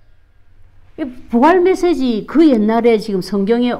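A middle-aged woman speaks clearly and with emphasis, close by.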